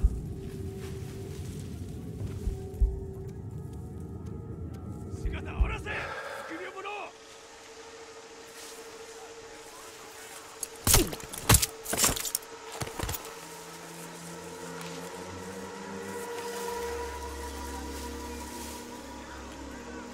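Footsteps rustle through tall grass and leaves.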